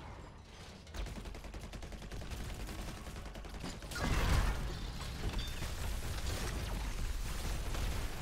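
Fantasy battle sound effects clash and crackle.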